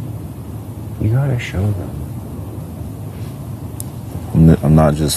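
A man speaks calmly nearby, picked up by a microphone.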